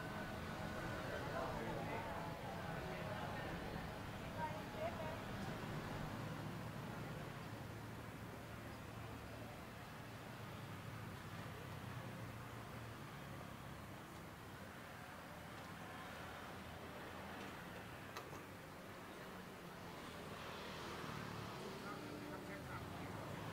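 Traffic hums steadily along a nearby street outdoors.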